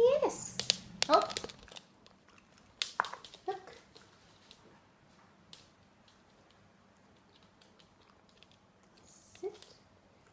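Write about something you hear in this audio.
A small dog's claws tap on a wooden floor.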